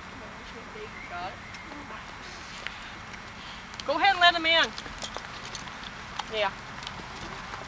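A young girl calls out brightly nearby, outdoors.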